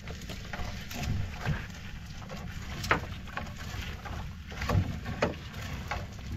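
Wet net slaps against the side of a wooden boat.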